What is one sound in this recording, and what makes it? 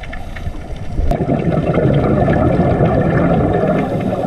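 Scuba divers breathe out, with bubbles gurgling and rumbling underwater.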